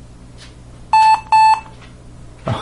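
A laptop gives a few short electronic beeps as it starts up.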